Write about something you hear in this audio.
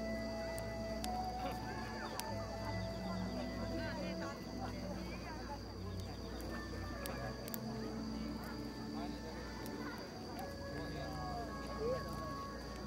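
A flute plays a melody.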